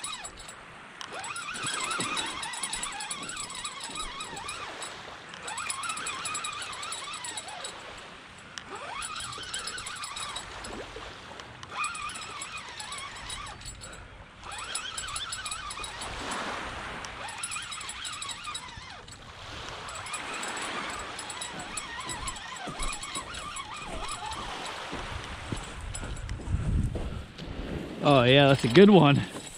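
Small waves lap gently against a pebbly shore.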